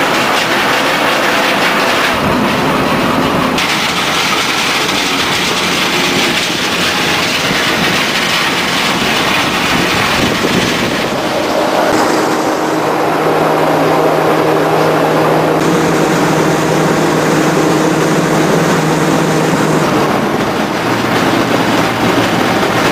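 Heavy machinery rumbles and clatters loudly.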